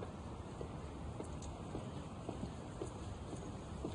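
Footsteps tap slowly on pavement.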